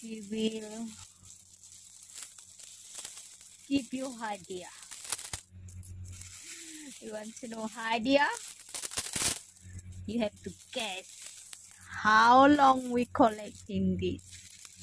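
Metal coins clink and jingle as a hand stirs through a heap of them.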